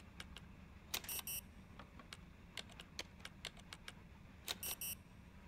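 An electronic keypad sounds a short double buzz of rejection.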